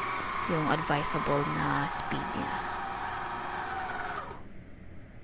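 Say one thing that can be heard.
An electric stand mixer's motor whirs steadily, then winds down and stops.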